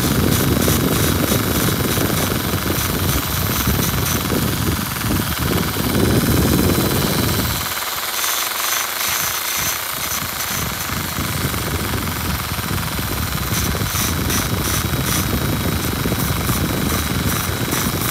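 A grinding bit scrapes and grinds against a metal ring.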